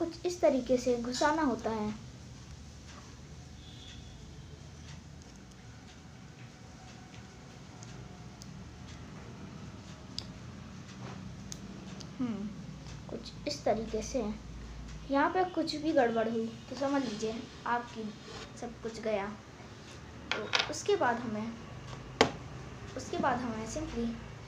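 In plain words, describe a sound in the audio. A boy talks calmly and close by.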